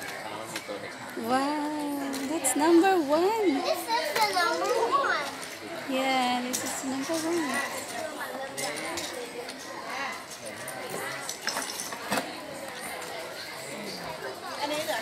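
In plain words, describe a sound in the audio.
Plastic toy bricks clatter and click together.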